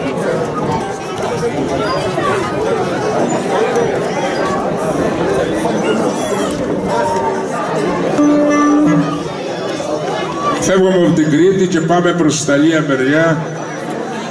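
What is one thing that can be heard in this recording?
A lute-like string instrument plays a lively melody.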